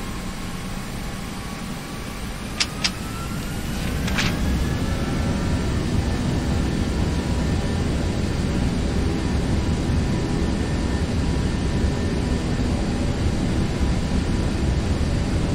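Tyres rumble steadily on a runway.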